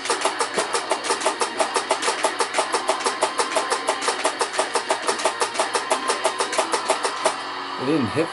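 Drums pound in a fast, steady beat, then stop.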